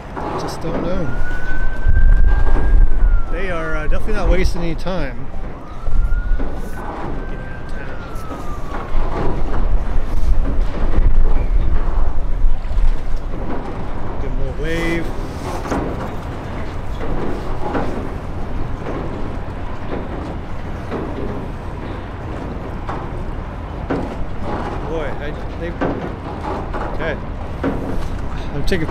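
Water splashes and laps against a boat's hull.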